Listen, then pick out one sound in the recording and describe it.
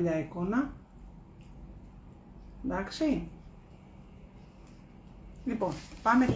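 A woman speaks calmly close by, in short phrases.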